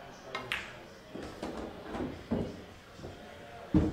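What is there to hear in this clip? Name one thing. A cue strikes a pool ball with a sharp tap.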